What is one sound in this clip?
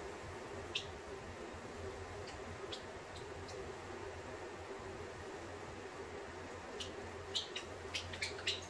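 A pump sprayer hisses steadily as liquid mists onto a floor.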